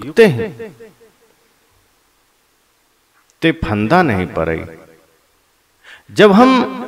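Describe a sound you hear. A young man chants in a slow, sustained melody close to a microphone, with pauses between phrases.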